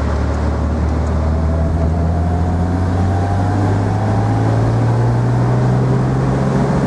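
A car engine hums steadily and slowly rises in pitch as the car speeds up.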